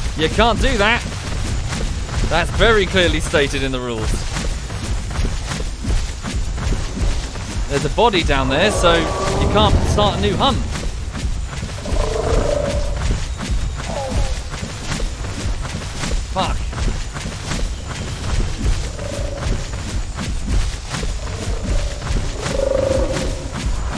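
A large creature's heavy footsteps thud on soft ground.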